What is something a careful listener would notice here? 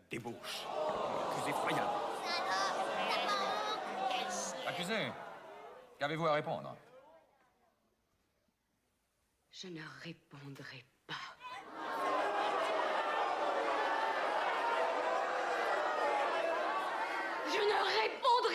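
A large crowd murmurs and shouts in an echoing hall.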